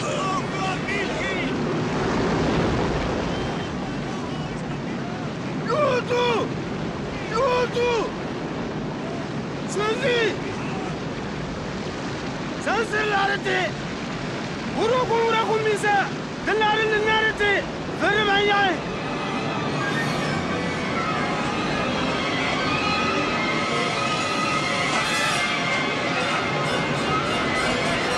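Waves crash and splash against a boat.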